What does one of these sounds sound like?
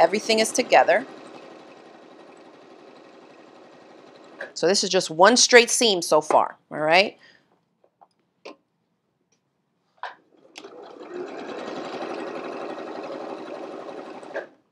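A sewing machine hums and whirs as it stitches.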